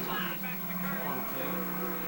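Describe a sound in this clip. A video game car crashes into a taxi through a television speaker.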